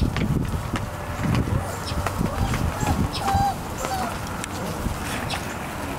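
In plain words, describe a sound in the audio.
Puppies give small squeaks and grunts while playing.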